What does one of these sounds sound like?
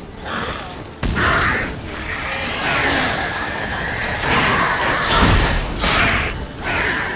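Blasts of flame burst with a deep whoosh.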